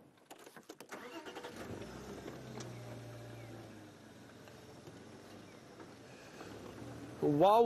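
A vehicle engine starts and idles with a low rumble.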